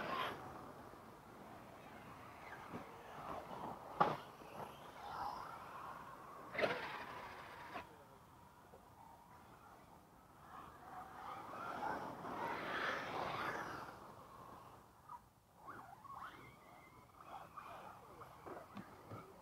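Toy car tyres scrape and skid on dirt.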